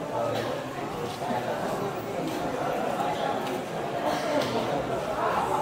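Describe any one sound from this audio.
A crowd of men chatters nearby.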